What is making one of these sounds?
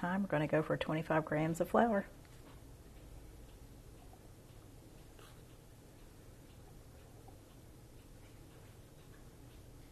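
A metal spoon clinks against a glass jar.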